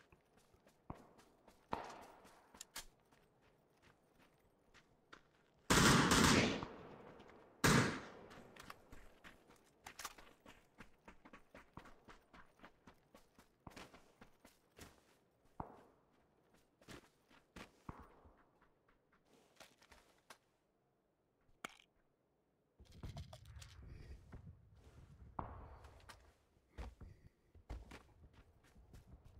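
Footsteps crunch quickly over the ground.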